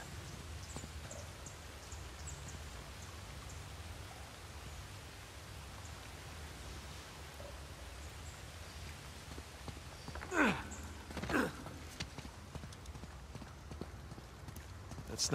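Footsteps scuff on rock.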